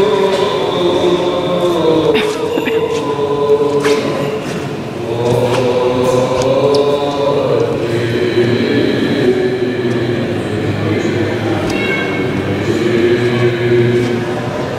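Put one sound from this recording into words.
Men chant together in a large echoing hall.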